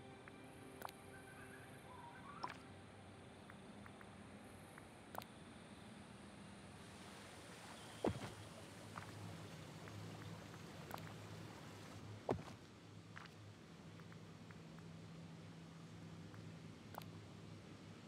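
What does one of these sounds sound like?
Short game menu clicks sound now and then.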